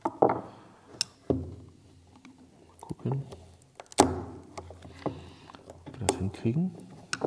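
Small metal and plastic parts click as a screwdriver pries them apart.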